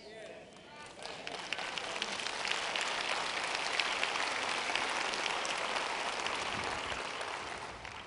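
An audience claps and cheers in a large hall.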